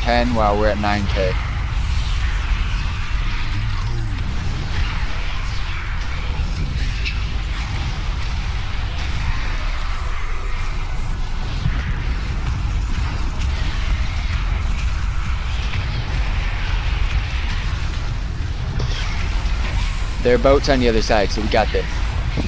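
Spell blasts and impacts crackle and boom in a game battle.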